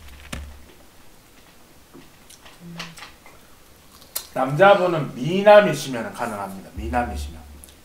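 A young woman bites and chews crispy fried chicken.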